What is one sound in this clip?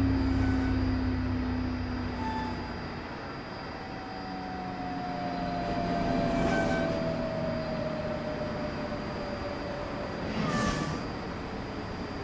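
A high-speed train pulls in and slows with a falling whine.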